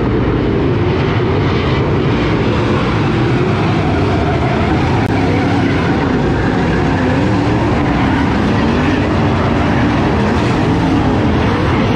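Race car engines rev up and down as the cars pass.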